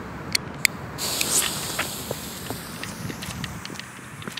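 A fuse hisses and sputters.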